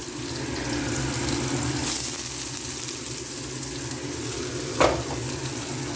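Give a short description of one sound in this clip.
Chopped onions tumble into a pan and sizzle loudly.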